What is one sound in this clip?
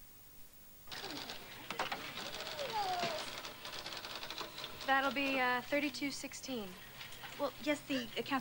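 A crowd of shoppers chatters.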